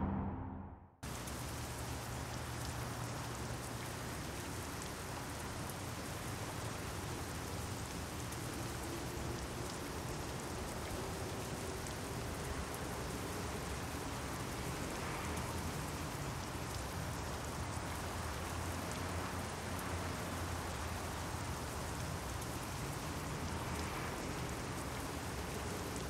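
Rain falls steadily on pavement.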